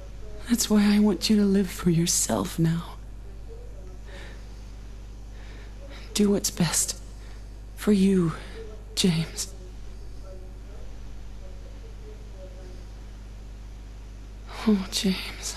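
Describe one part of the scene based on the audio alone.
A young man talks close to a microphone in short bursts.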